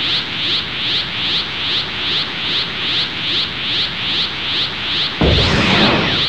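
An energy charge hums and pulses in a quick, steady rhythm.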